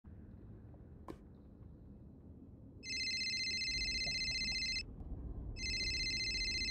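Lava bubbles and pops with a low crackling rumble.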